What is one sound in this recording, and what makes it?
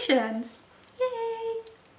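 A woman exclaims in a drawn-out, sing-song voice.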